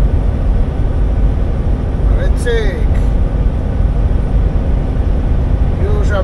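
A car's tyres rumble steadily on a road from inside the car.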